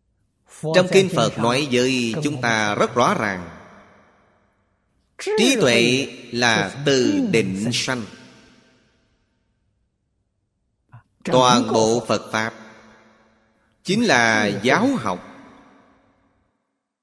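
An elderly man speaks calmly and slowly into a close microphone, in short phrases with pauses.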